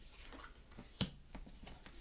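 A card is tapped down onto a table.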